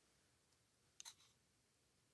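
A small plastic toy clicks softly as it is handled.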